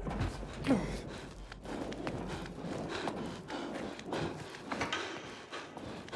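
Hands climb the rungs of a ladder with dull knocks.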